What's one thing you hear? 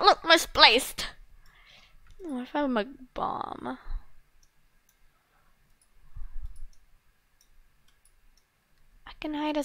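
A young girl talks with animation close to a microphone.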